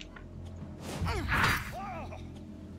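A blade strikes with a sharp clash.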